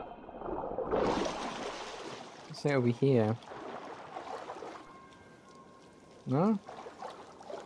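Water splashes as a swimmer breaks the surface and wades.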